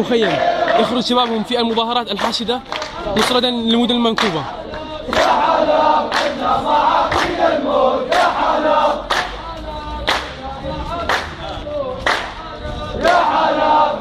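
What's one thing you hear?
Men clap their hands in rhythm.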